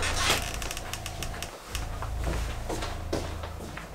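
Footsteps walk away across a room.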